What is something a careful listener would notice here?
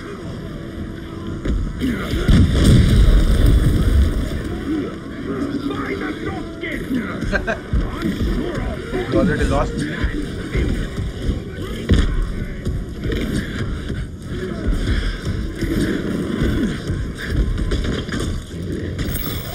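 A huge beast stomps heavily across creaking wooden boards.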